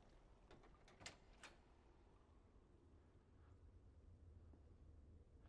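A heavy door clanks and creaks open.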